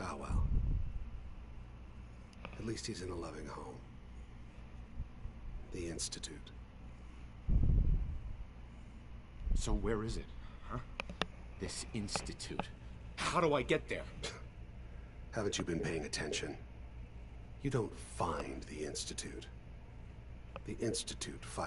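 A middle-aged man speaks calmly and in a low voice, close by.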